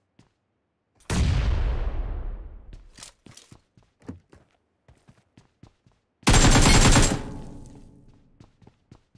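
Gunshots boom loudly and echo.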